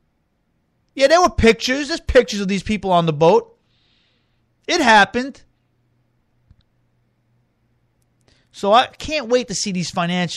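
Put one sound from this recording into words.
A man speaks into a microphone in short bursts with long pauses.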